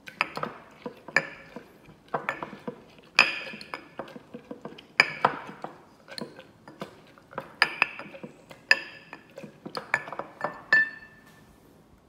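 A wooden muddler pounds and crushes berries in a glass, again and again.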